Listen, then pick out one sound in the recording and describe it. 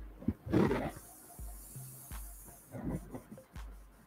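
An airbrush hisses in short bursts.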